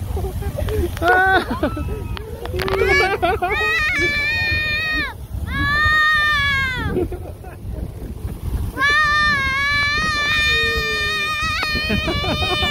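A man close by shouts and whoops excitedly.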